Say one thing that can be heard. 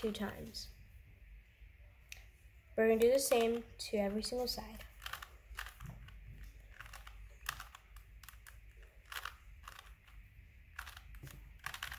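A puzzle cube's plastic layers click and rattle as hands twist them.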